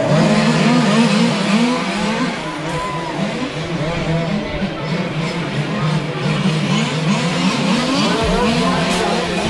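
Remote-control cars race by with their small electric motors whining, rising and falling in pitch.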